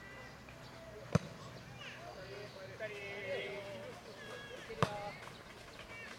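A soccer ball is kicked with a dull thud outdoors.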